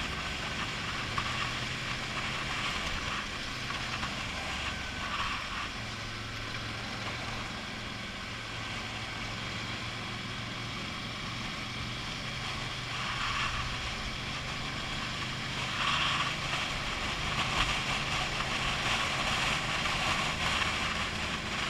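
Wind rushes loudly past a helmet.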